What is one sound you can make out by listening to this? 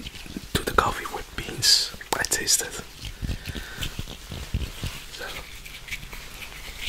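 A young man speaks softly and closely into a microphone.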